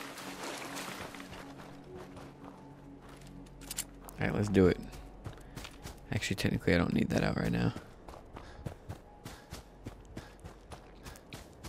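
Footsteps crunch on rough ground.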